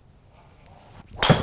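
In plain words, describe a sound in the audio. A golf club strikes a ball with a sharp crack.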